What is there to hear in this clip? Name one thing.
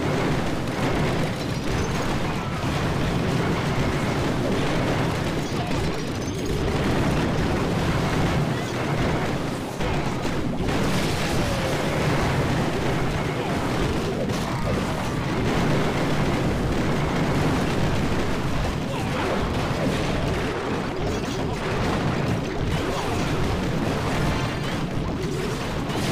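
Game explosions and battle clashes rumble steadily.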